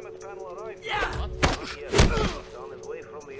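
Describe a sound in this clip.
Heavy blows thud during a brief scuffle.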